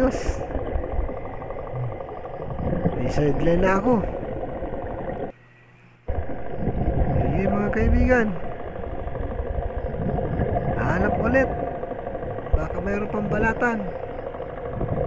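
Water rumbles and hisses steadily underwater.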